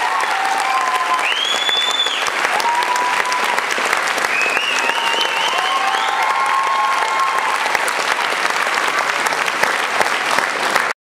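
A band plays loud music in a large hall.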